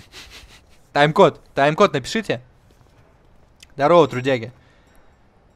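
Men talk calmly with one another.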